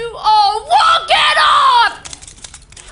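A young woman shouts loudly.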